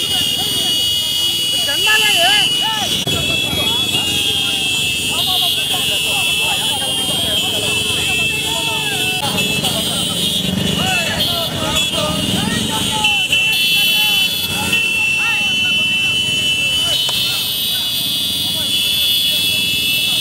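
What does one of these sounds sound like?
A crowd of men cheers and shouts outdoors.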